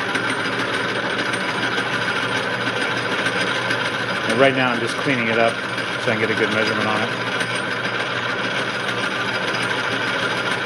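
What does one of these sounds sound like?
A metal lathe runs with a steady whirring hum.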